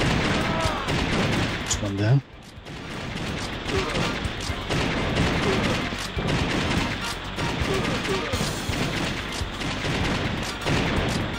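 Gunfire rattles and blasts in quick bursts.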